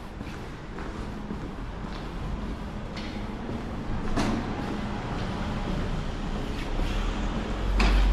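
Footsteps echo on a stone floor in a vaulted passage.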